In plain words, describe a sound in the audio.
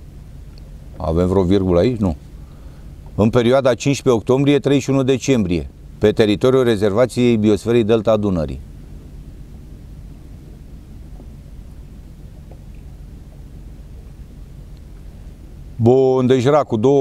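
An elderly man speaks calmly and close up, with pauses.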